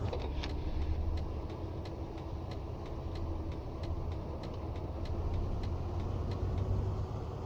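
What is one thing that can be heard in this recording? A bus engine hums steadily as the bus drives along.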